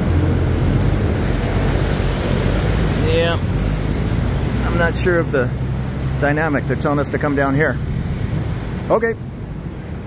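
Churning water splashes against a pier.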